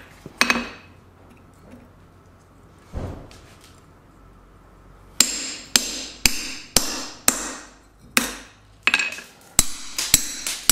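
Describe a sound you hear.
A hammer strikes a steel punch with sharp, ringing clangs.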